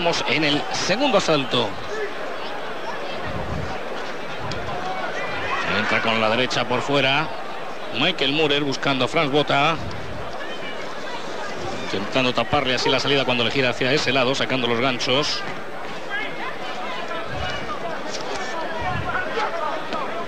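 A large crowd murmurs in a big echoing arena.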